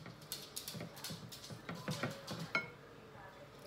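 A spatula scrapes and knocks against a baking dish.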